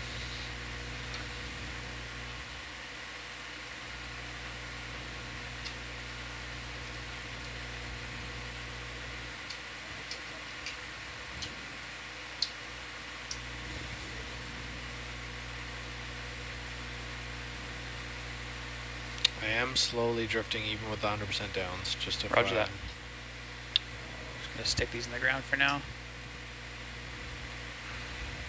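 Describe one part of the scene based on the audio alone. A robotic arm's motors hum steadily.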